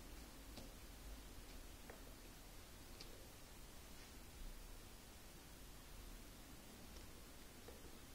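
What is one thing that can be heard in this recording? A dog chews and gnaws on a plastic toy with soft clicks.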